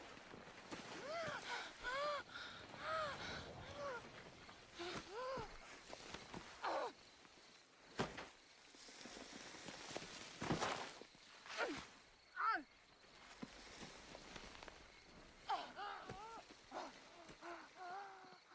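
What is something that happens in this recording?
A woman groans and gasps with strain.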